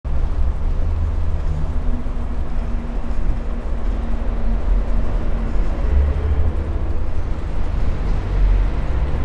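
Small wheels rumble steadily over a hard floor in an echoing tunnel.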